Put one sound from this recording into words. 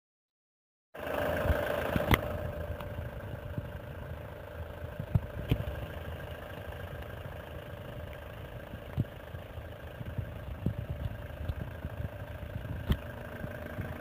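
A van engine idles steadily nearby.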